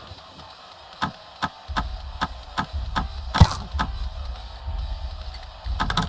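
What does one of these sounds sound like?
A lock pick clicks and ticks inside a lock.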